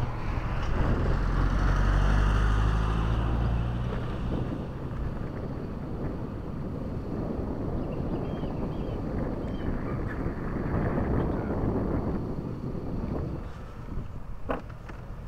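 Wind rushes and rumbles outdoors.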